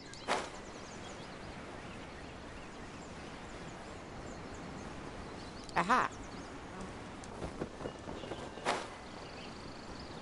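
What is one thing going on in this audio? Wind rushes steadily past during a glide.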